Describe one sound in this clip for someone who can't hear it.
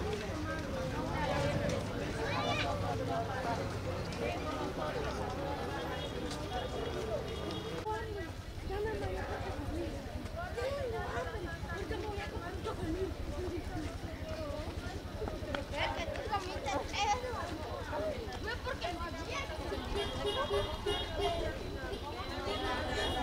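A crowd of women and children chatter as they walk outdoors.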